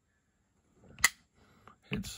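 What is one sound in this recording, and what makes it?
A folding knife blade snaps shut with a sharp click.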